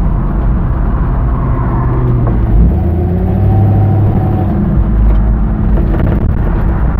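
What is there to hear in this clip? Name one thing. Tyres roll over pavement.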